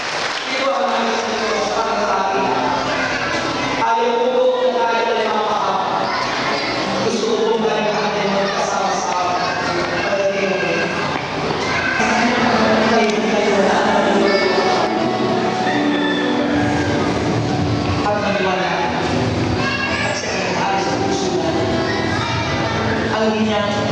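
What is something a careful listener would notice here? A crowd sings together in a large echoing hall.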